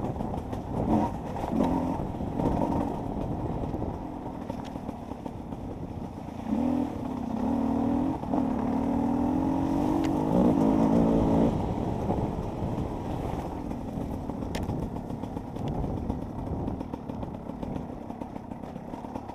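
Tyres crunch over a bumpy dirt track.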